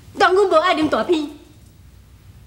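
A young woman sings in a high, wavering voice.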